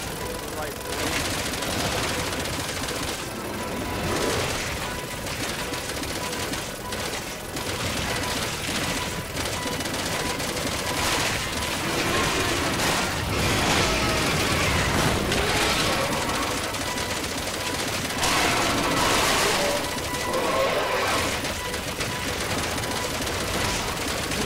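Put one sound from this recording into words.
A helicopter's rotor and engine drone steadily.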